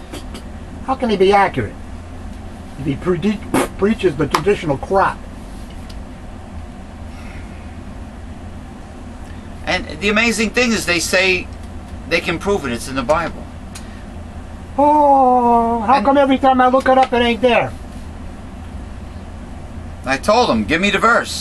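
A middle-aged man speaks close to a microphone, with pauses.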